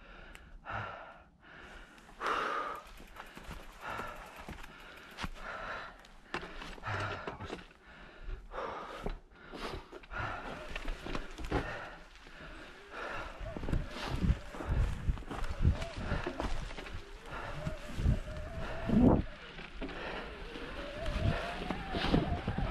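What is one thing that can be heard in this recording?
Tyres crunch and rustle over dry leaves on a forest trail.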